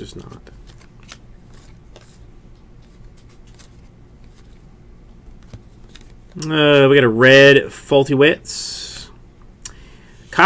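Trading cards slide and flick against each other in hands.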